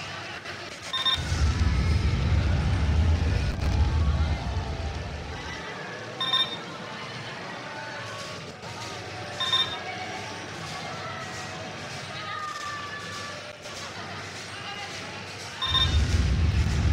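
A short bright chime sounds several times.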